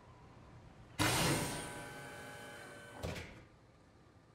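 A heavy metal door slides open with a loud hiss.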